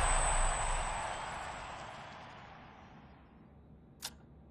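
A short victory jingle plays and fades.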